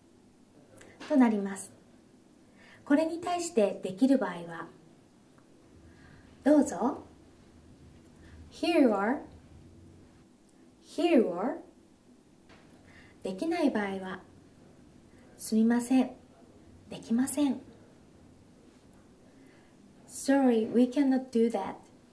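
A young woman speaks short phrases clearly and calmly into a close microphone, with pauses between them.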